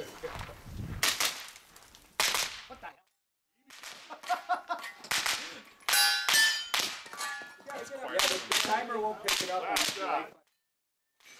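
Gunshots crack in quick bursts outdoors.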